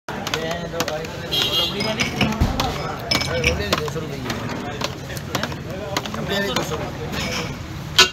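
A metal spoon scrapes and clinks against a metal bowl.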